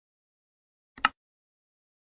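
A mouse button clicks once.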